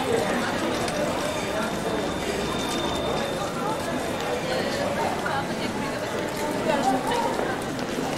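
A tram approaches slowly from down the street.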